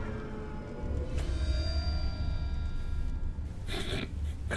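A bright game chime sounds for a score bonus.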